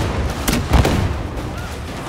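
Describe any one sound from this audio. A laser beam fires with a sharp zap.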